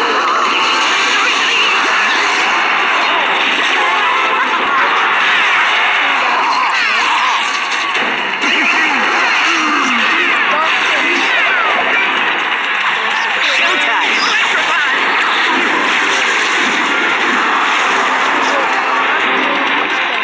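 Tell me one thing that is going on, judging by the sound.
Game sound effects chime and pop.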